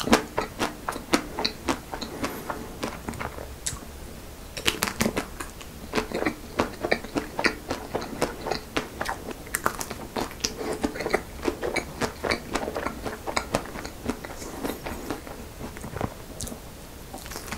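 A young man chews and smacks his lips wetly close to a microphone.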